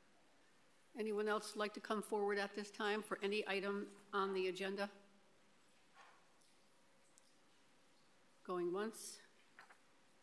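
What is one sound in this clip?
A middle-aged woman speaks into a microphone, calmly and clearly.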